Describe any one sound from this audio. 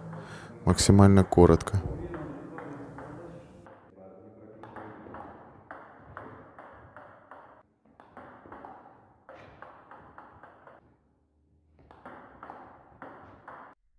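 A table tennis ball bounces on a table.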